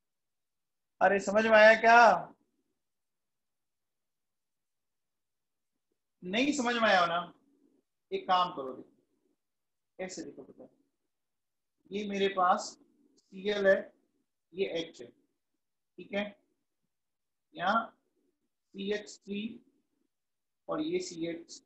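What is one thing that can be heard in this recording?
A man explains calmly into a close microphone, in short phrases with pauses.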